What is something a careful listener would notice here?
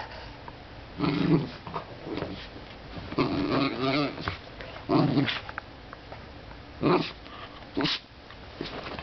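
A small dog grunts and snorts playfully.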